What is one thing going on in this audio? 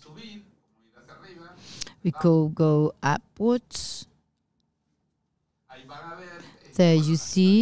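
A middle-aged man speaks into a handheld microphone with animation, in pauses.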